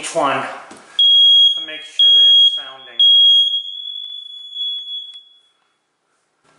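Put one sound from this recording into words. A smoke alarm sounds three loud, shrill beeps, then a fading tone.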